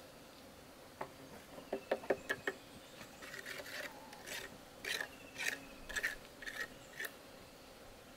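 A man scrapes and taps on a wooden trough with a small tool.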